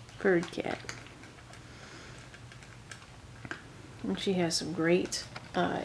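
A cat crunches dry kibble from a metal bowl.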